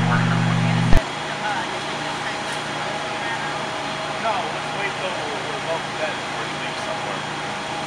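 Water sprays from a fire hose with a steady hiss.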